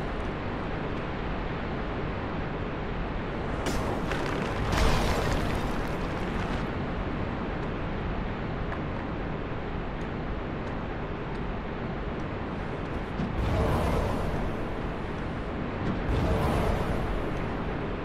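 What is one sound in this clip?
Armoured footsteps scrape and clink over stone.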